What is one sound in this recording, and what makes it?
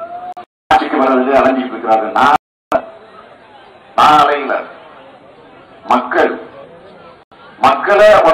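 A middle-aged man speaks forcefully into a microphone, heard through loudspeakers.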